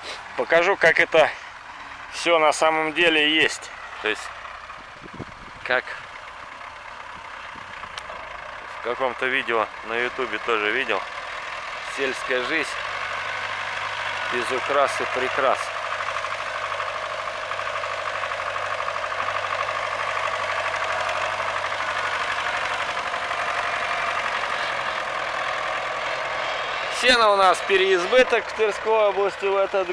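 A tractor engine rumbles, growing louder as it comes near.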